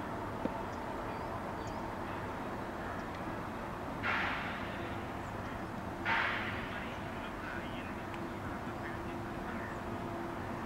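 Wind blows outdoors in occasional gusts.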